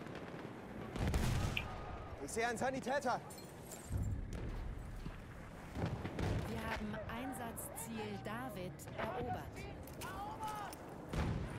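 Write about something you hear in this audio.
Explosions boom with deep, heavy thuds.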